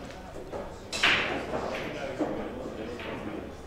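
Pool balls crack apart loudly and clatter across the table on a break shot.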